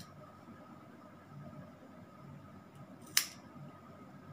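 Scissors snip through hair.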